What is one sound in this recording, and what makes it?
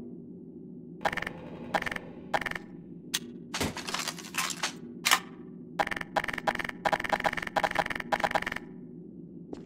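A submachine gun fires short, rapid bursts.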